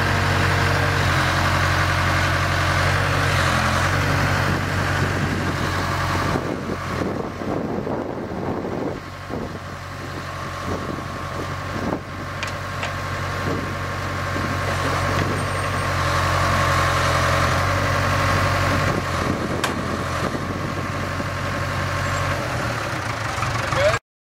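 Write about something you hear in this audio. Hydraulics whine as a backhoe arm swings and lifts.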